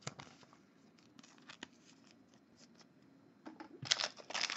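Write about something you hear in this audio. Trading cards flick and shuffle between fingers.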